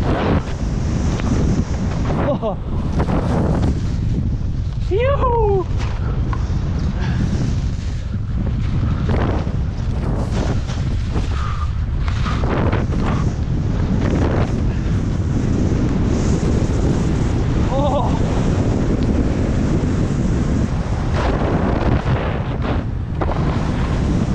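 Wind rushes and buffets loudly past a skier moving fast.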